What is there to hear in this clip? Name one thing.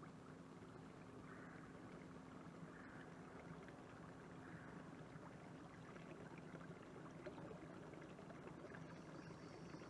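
Water laps softly against a canoe's hull as it glides.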